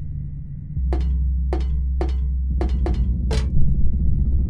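Footsteps clack on a hard metal floor.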